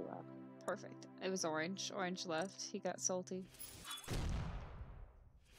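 A short, cheerful victory tune plays and ends with a whooshing sweep.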